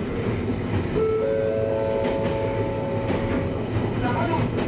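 Train brakes squeal with high steady tones as the train slows.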